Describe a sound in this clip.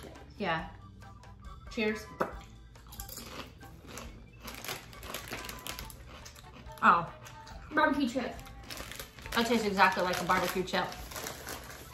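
A snack bag crinkles.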